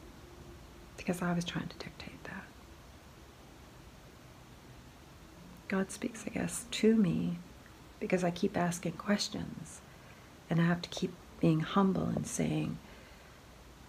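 A middle-aged woman speaks close by, calmly and hesitantly.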